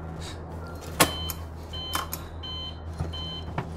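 A call signal beeps in a steady repeating pattern.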